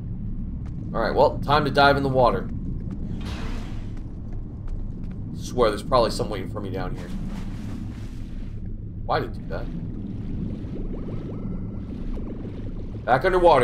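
A man talks casually into a close microphone in short bursts.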